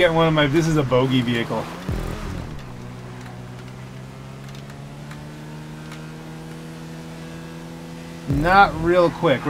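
An off-road buggy engine drones steadily.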